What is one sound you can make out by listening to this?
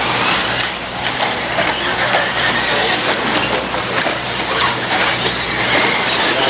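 Small tyres crunch and scatter dirt.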